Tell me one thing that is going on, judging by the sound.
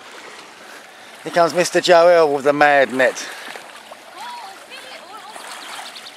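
Water sloshes around a person wading.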